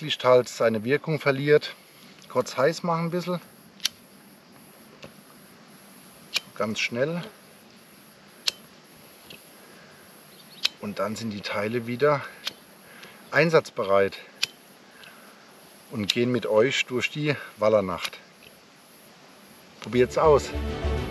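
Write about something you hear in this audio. A man talks calmly and close by, in short bursts with pauses.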